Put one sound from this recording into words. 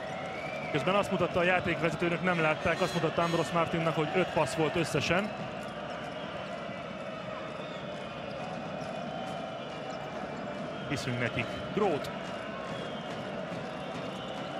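A large crowd murmurs in an echoing hall.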